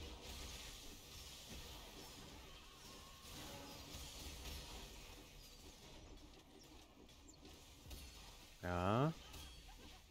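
Game battle effects clash and crackle with magic blasts.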